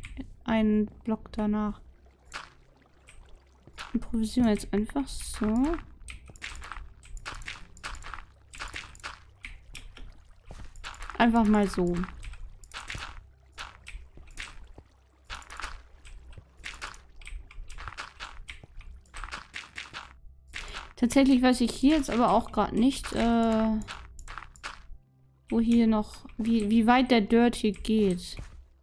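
Blocks of dirt are placed with soft, quick thuds.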